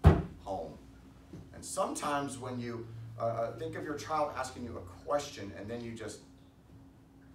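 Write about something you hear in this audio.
A middle-aged man speaks firmly and with emphasis, as if preaching.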